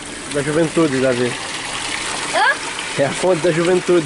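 Water splashes steadily from a spout into a basin.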